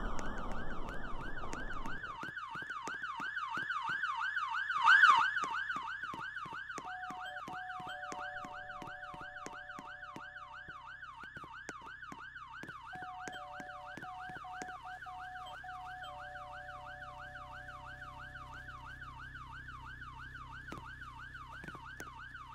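Footsteps tap quickly on pavement.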